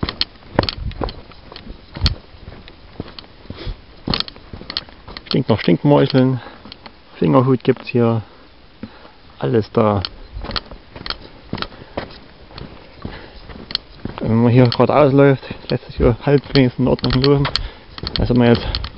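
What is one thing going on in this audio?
Footsteps crunch on a gravel path outdoors.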